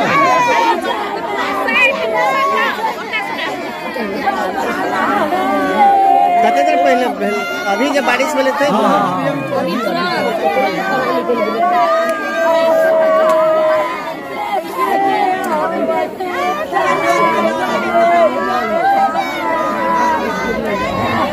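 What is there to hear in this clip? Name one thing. Women wail loudly and sob in grief, close by.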